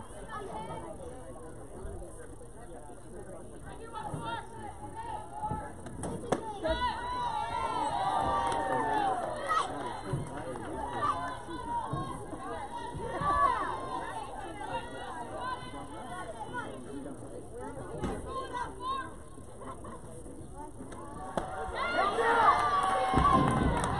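Young women shout and cheer from nearby outdoors.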